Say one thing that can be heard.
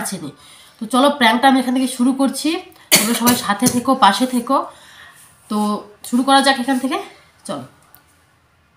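A young woman speaks close by, calmly and clearly.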